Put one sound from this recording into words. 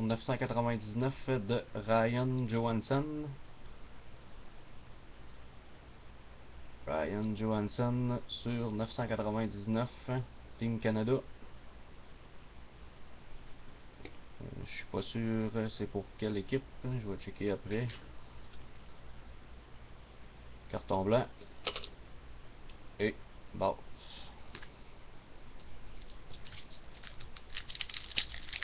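Stiff cards slide and rustle against each other between fingers.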